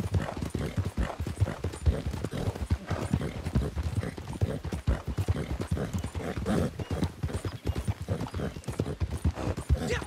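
Horse hooves thud steadily on a dirt path.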